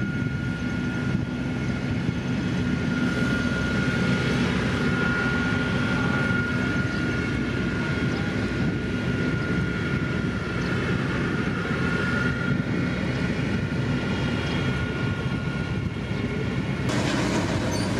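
Heavy road rollers' diesel engines drone steadily nearby.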